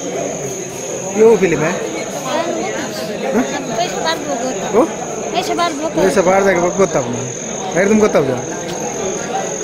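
A boy speaks close by with excitement.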